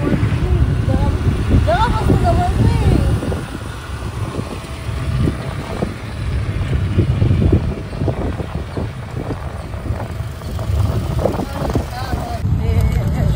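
An auto-rickshaw engine rattles and hums steadily up close.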